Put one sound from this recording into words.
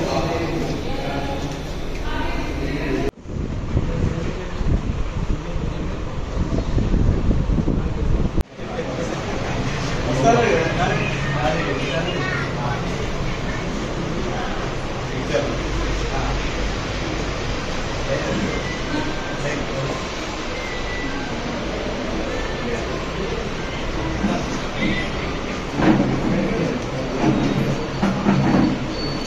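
Several men talk and chatter close by.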